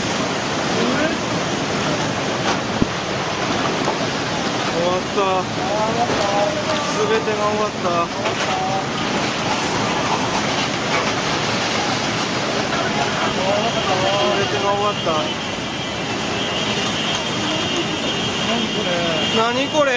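Floodwater roars and churns steadily outdoors.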